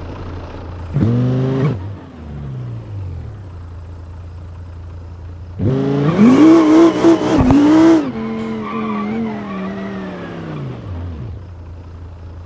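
A car engine revs hard, rising and falling in pitch, then winds down.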